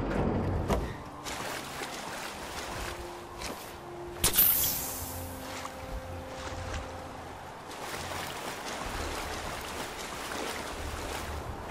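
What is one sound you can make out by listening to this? Water swishes as someone swims.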